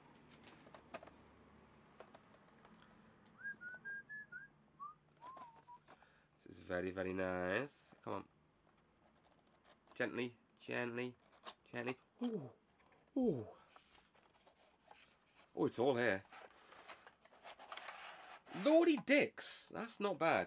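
Plastic packaging rustles and crinkles in a man's hands.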